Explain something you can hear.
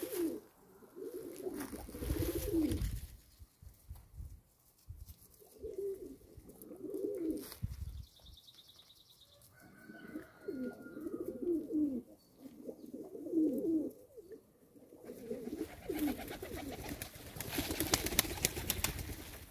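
Pigeons coo softly and repeatedly close by.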